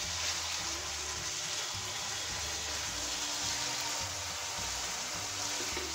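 A wooden spatula scrapes and stirs thick food in a pan.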